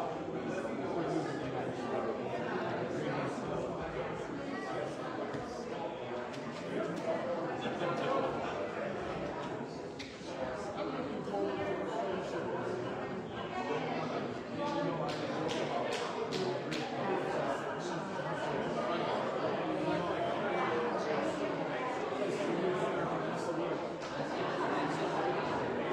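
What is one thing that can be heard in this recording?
A man speaks calmly and steadily, reading out in a room with a slight echo.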